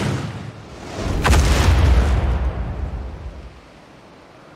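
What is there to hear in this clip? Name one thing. A large beast roars loudly and deeply.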